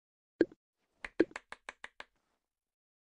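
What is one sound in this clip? A cartoon clock ticks quickly.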